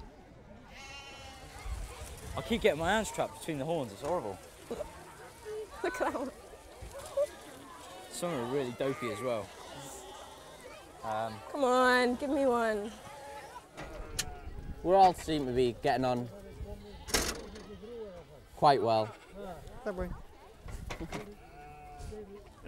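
A crowd of men and women talk over one another outdoors.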